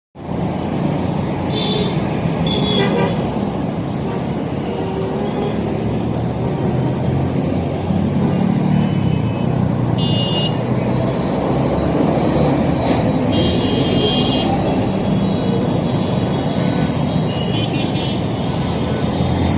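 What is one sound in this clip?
Steady city traffic rumbles past outdoors.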